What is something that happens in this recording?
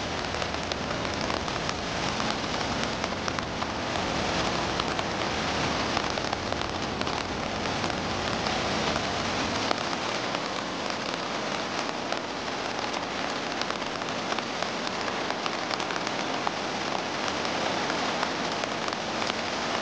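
Water roars steadily as it pours through a dam's floodgates.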